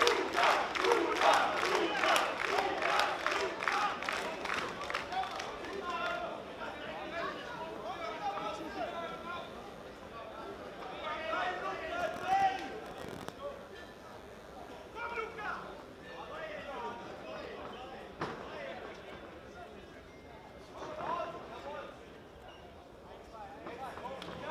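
A crowd cheers and shouts in a large echoing hall, loudest at first and then quieter.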